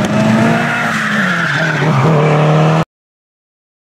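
Tyres squeal on asphalt.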